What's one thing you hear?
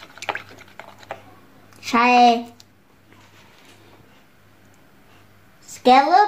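A wooden stick stirs sticky slime in a plastic bowl, squelching softly.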